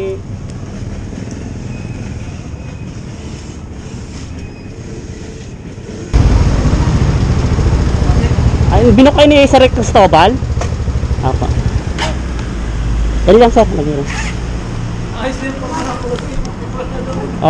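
A motorbike engine idles with a low rumble.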